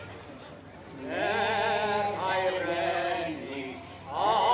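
An elderly man speaks into a microphone over a loudspeaker.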